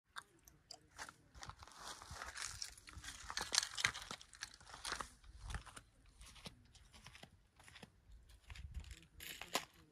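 Wind blows through dry brush outdoors.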